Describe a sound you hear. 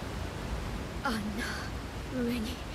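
A young woman speaks softly in reply.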